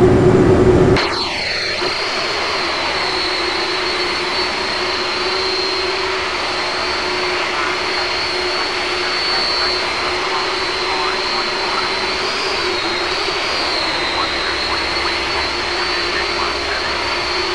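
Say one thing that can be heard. A jet airliner's engines whine steadily as it taxis.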